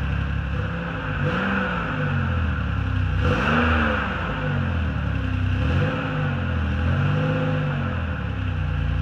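A car engine revs up and down several times.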